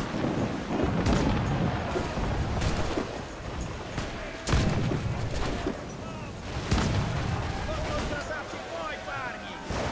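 Cannons fire with loud booming blasts.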